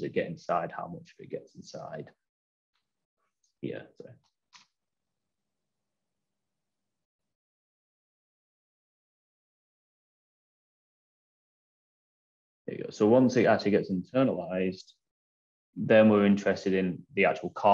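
A man speaks calmly through an online call, pausing now and then.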